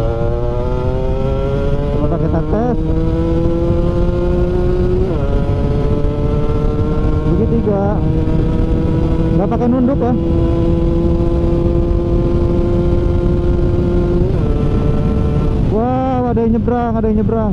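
A scooter engine hums steadily at cruising speed, rising and dipping slightly in pitch.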